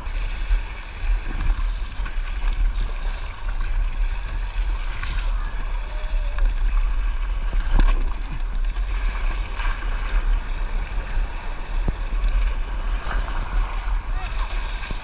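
Water swishes against a kayak's hull.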